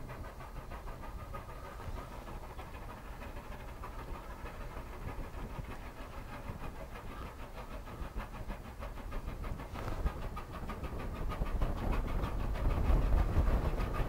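A steam locomotive chuffs rhythmically as it labours closer and grows louder.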